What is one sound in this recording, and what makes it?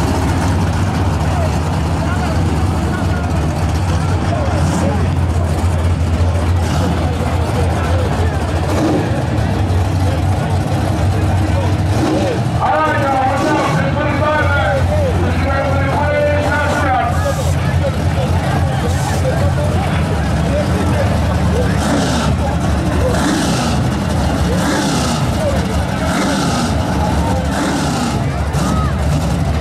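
A large crowd chatters loudly outdoors.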